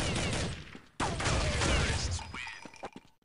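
Gunfire bursts out loudly.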